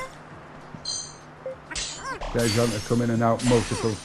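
A short bright chime rings as a glowing item is picked up.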